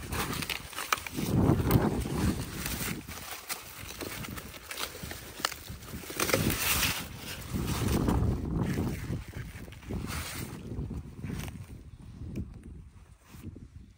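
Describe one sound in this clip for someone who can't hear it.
Large leaves rustle and swish as a gloved hand pushes through them.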